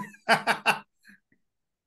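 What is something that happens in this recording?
Several people laugh briefly over an online call.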